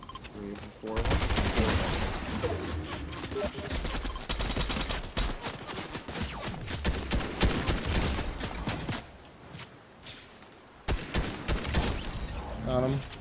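Rapid gunfire crackles and bangs.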